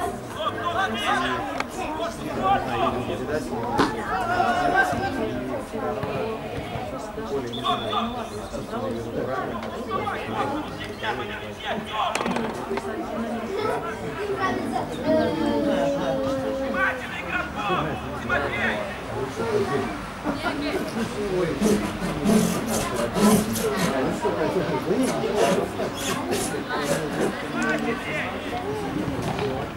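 Young men shout to each other across an open playing field.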